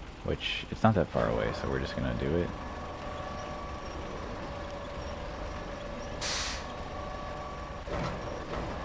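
A crane's engine hums steadily.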